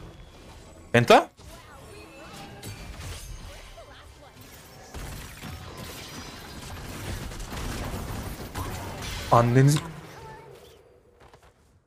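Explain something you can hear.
Video game battle effects crackle and burst.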